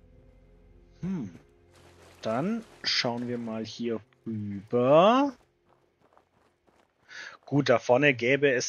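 A man talks with animation, close to a microphone.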